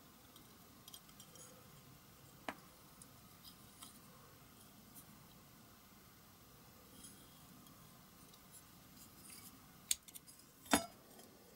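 A screwdriver scrapes against metal.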